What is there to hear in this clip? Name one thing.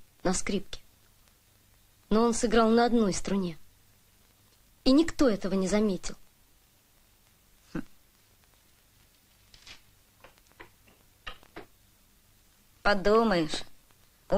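A boy speaks calmly in short phrases.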